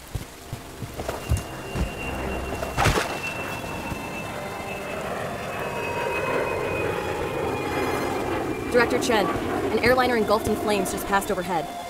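A burning airliner roars overhead with a falling whine.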